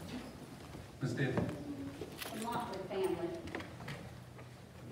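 A man speaks from the front of a large echoing room, heard from a distance through a microphone and loudspeakers.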